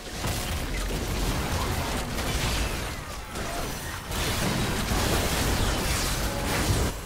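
Magical blasts and hits crackle and boom in a video game battle.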